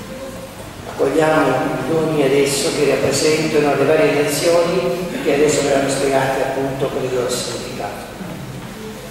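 A middle-aged man chants through a microphone in an echoing hall.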